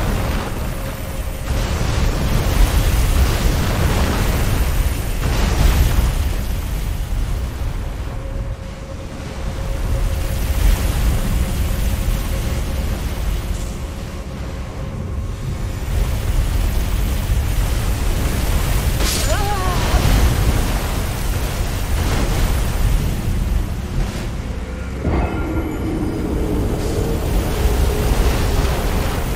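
A heavy wheel rumbles loudly as it rolls over stone.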